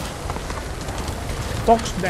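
Water splashes under a horse's hooves.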